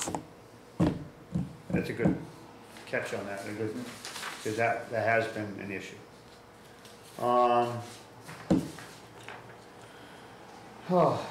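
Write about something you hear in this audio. Paper rustles as a man handles documents.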